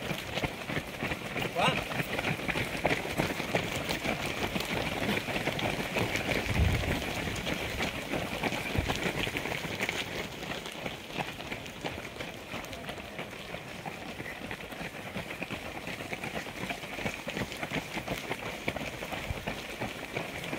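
Many running footsteps patter on pavement close by.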